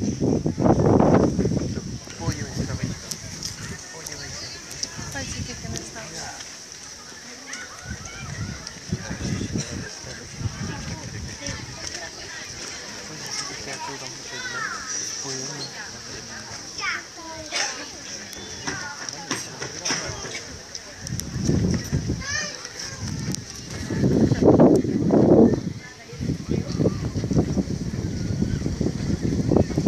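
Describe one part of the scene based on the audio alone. A crowd of visitors chatters at a distance outdoors.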